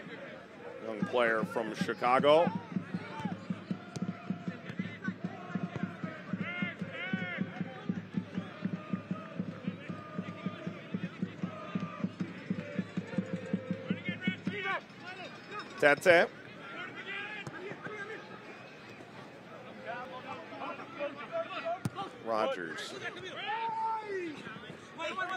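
Players shout to each other on the field.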